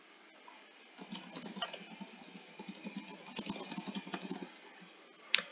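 A keyboard clicks with quick typing.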